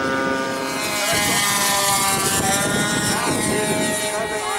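A second model airplane engine whines as it flies past low.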